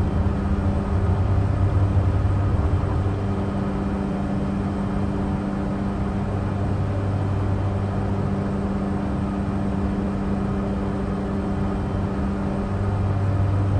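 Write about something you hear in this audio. A propeller aircraft's engine drones loudly and steadily from inside the cockpit.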